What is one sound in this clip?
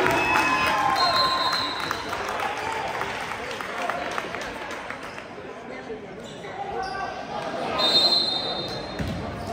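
A referee blows a whistle.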